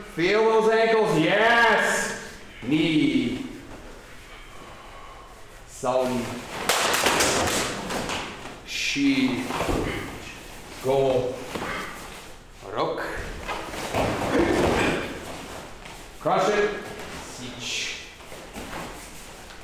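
Uniforms snap and swish as students strike and kick.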